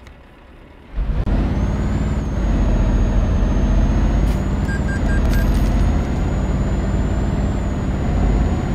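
A truck engine starts and rumbles loudly.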